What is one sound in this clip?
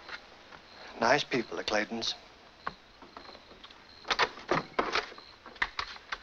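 A man speaks calmly at a door.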